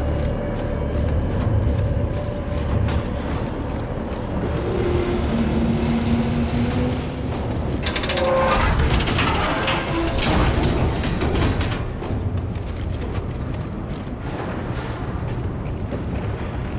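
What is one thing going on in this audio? Heavy boots clank on a metal grating.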